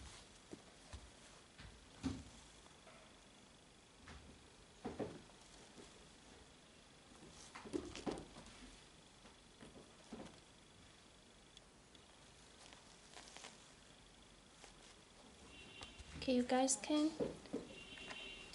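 Hands rustle and thump a shoe.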